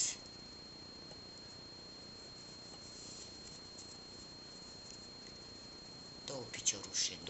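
Yarn rustles softly as a crochet hook works it.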